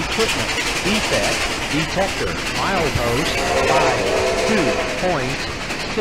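Steam engine chuffs loudly as it passes close by.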